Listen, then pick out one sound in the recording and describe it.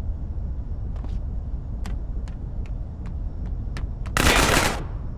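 Footsteps run on a metal floor.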